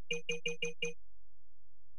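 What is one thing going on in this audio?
A game menu beeps five times in quick succession.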